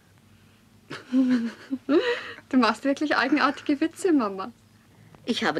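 A young woman speaks in an amused voice.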